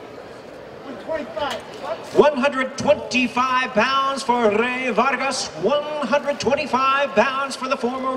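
A man announces loudly over a loudspeaker in an echoing hall.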